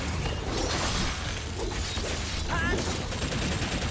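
Magic blasts crackle and burst.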